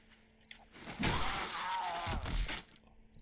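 A knife stabs into flesh with a wet thud.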